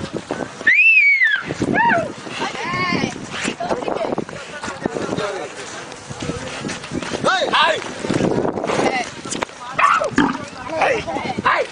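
Young men shout excitedly outdoors.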